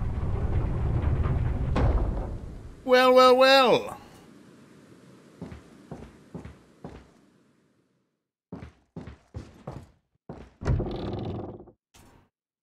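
A young man talks into a close microphone.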